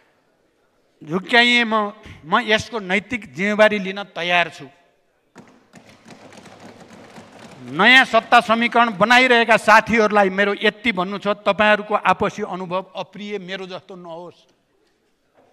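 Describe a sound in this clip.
An elderly man speaks forcefully into a microphone.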